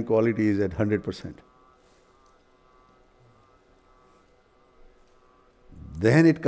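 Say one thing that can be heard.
An elderly man speaks calmly and close by, with pauses between phrases.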